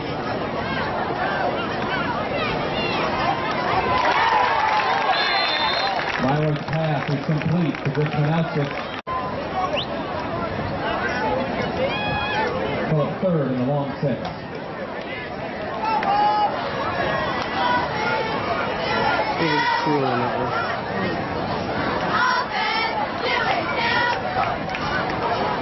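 A crowd of spectators chatters and cheers close by, outdoors.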